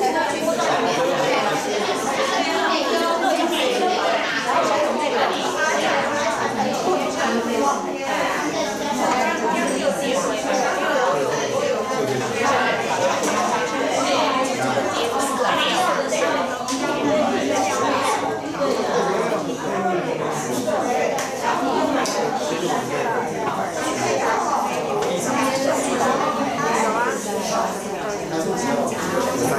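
People chatter quietly nearby.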